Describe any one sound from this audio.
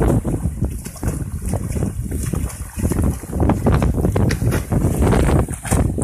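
A swimmer splashes through water.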